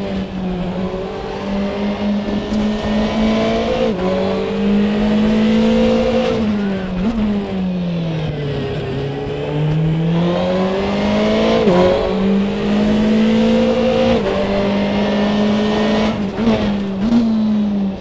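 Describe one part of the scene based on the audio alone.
A race car engine roars steadily, rising through gears and dropping as it slows for a corner.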